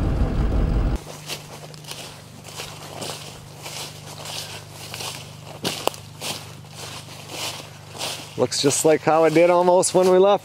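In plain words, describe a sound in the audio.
Footsteps crunch and rustle through dry fallen leaves.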